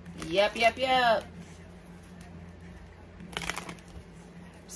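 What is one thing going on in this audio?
Playing cards shuffle and riffle with soft flicking sounds.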